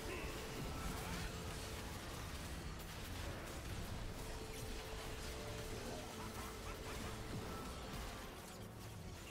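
Game combat effects clash and crackle in quick bursts.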